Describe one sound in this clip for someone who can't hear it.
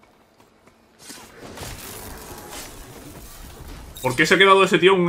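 Electric sparks crackle and sizzle in a burst.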